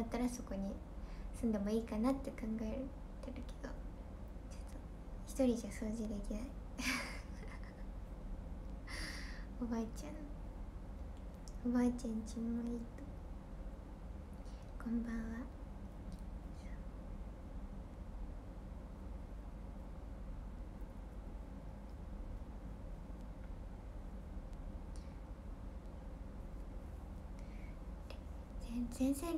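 A young woman speaks softly and close by, pausing often.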